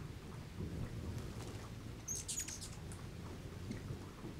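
Hummingbird wings whir as a bird hovers close by.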